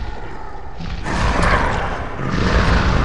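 A magic spell bursts with a rushing whoosh.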